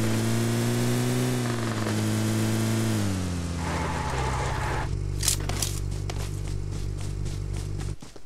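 A vehicle engine drones steadily, then winds down and idles.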